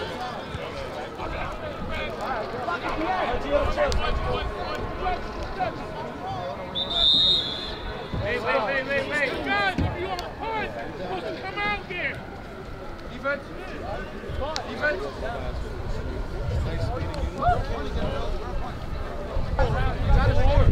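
A crowd of children and adults shouts and cheers outdoors.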